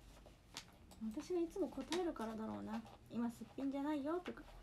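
A young woman speaks close by in a high, lilting voice.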